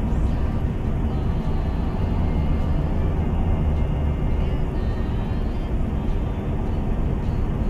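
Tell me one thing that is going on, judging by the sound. Tyres roll over a snowy road.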